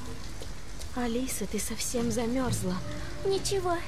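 A young woman speaks softly and gently.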